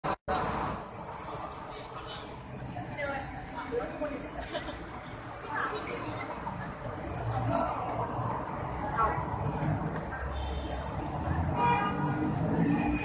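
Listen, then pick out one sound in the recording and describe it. A crowd murmurs.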